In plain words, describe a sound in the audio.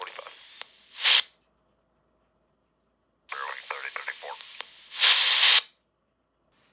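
Brief bursts of static hiss from a handheld radio as each transmission ends.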